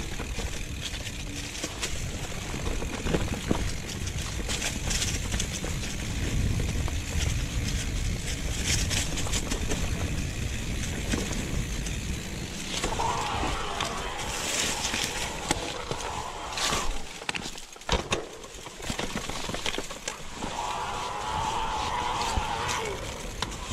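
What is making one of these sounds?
Bicycle tyres crunch and rattle over a dry leafy dirt trail.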